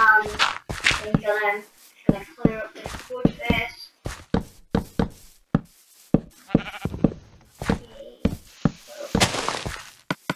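Wooden blocks knock softly as they are placed and broken.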